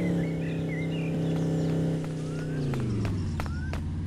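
A car engine hums steadily and drops in pitch as it passes.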